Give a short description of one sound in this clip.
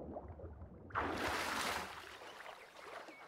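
Water splashes as a man surfaces.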